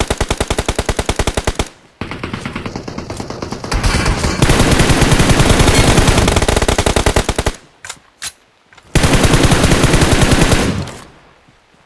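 Rapid automatic gunfire rattles in long bursts.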